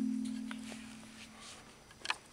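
A mallet strikes a large wooden xylophone bar, and the note rings and fades.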